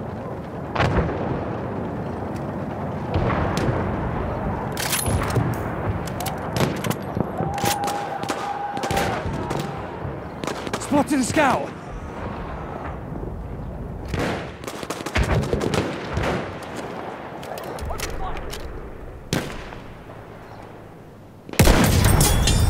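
A rifle fires sharp, loud shots now and then.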